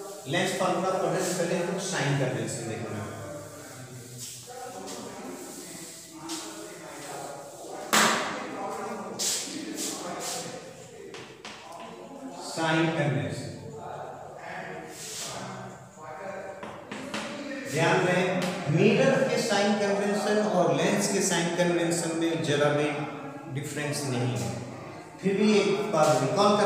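A man lectures steadily nearby.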